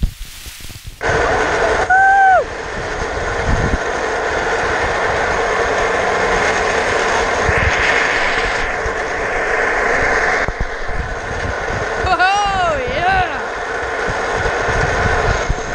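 An electric cart motor hums steadily.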